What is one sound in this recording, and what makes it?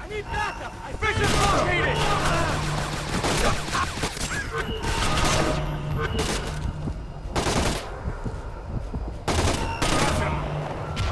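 Loud gunshots bang several times, with a ringing echo.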